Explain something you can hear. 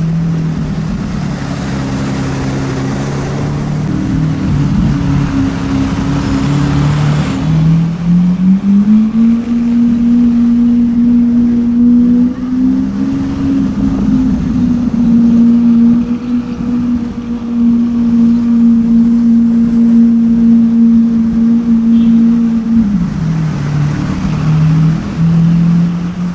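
Motorbikes and trucks pass in busy street traffic.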